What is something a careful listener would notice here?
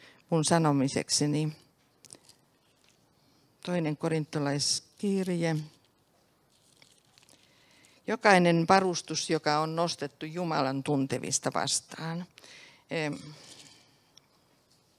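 An elderly woman speaks calmly into a microphone, heard through a loudspeaker.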